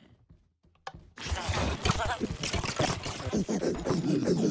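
Game monsters groan and growl in a crowd.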